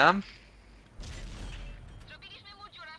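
A tank cannon fires with a heavy, low boom.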